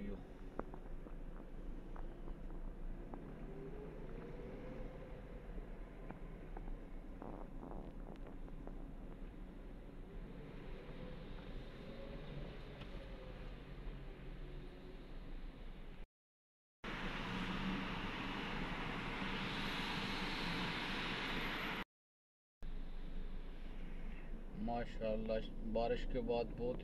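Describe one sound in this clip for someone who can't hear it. A car engine hums steadily from inside a car.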